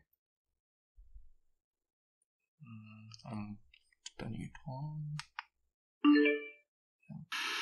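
A plug clicks into a small speaker's socket.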